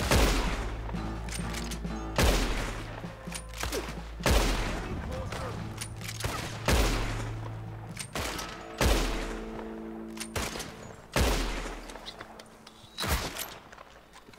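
Rifle shots crack loudly outdoors and echo away.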